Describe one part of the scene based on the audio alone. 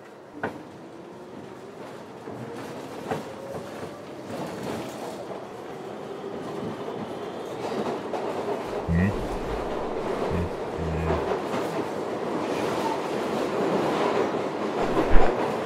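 A vehicle rumbles steadily, heard from inside.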